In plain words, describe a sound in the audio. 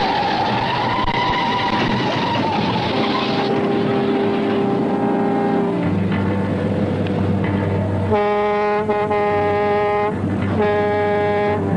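A truck engine roars steadily.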